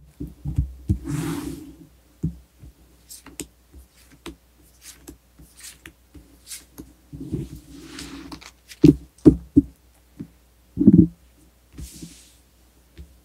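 Cards slide and swish across a cloth surface.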